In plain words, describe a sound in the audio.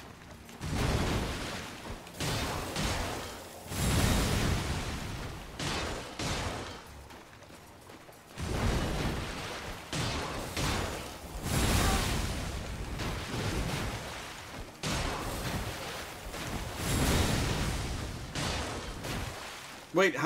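Metal weapons clash and strike.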